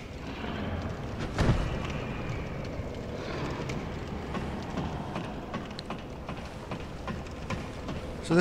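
Armoured footsteps clank steadily down stone stairs.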